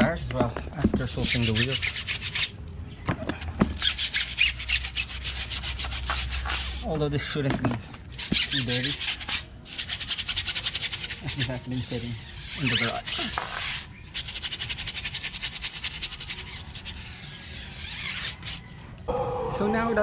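A stiff brush scrubs a wet tyre with a rapid scratching.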